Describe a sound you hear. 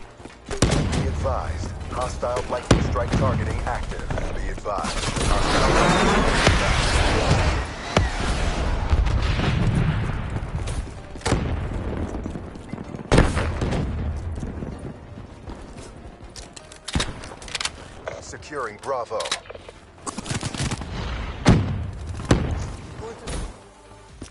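Gunshots crack in sharp bursts.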